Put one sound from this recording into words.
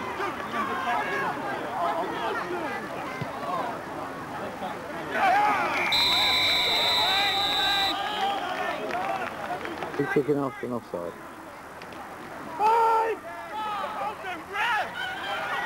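A crowd of men and women shout and cheer outdoors.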